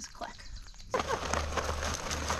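Bicycle tyres crunch over gravel.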